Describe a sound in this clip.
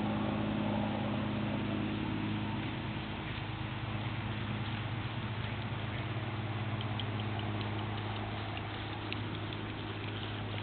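A horse's hooves thud softly on grass as it trots.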